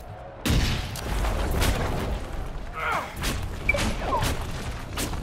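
Magic bolts whoosh and crack in bursts.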